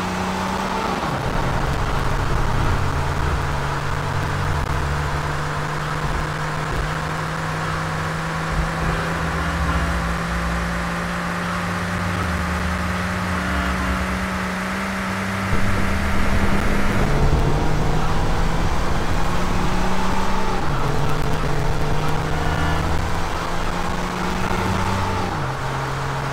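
A car engine drops in pitch as the car shifts gears.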